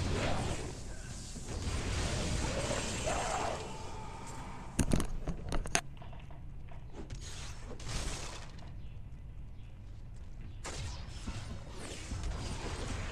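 Magic spells whoosh and crackle in a video game.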